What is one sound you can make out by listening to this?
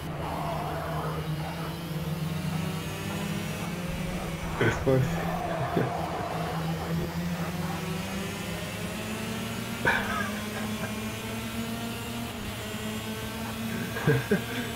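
A kart engine buzzes steadily at high revs, rising and falling in pitch.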